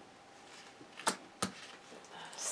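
A card is laid down softly on a table.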